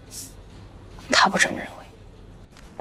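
A second young woman answers quietly, close by.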